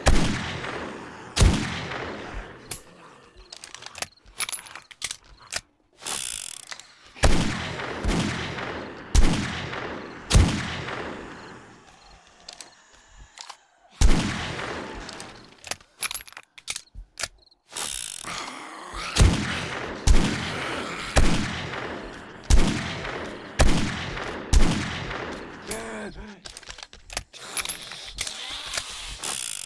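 A rifle fires single shots that echo down a corridor.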